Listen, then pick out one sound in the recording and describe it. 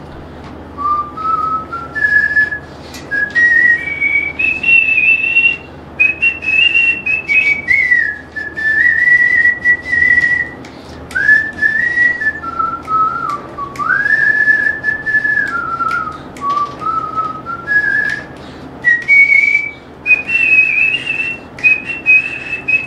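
A flute plays a slow, wavering melody close by.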